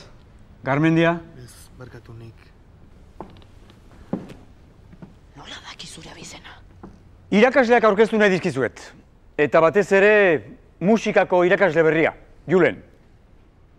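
A middle-aged man speaks nearby in a firm, animated voice.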